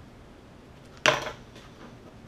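A pen is set down on a wooden table with a knock.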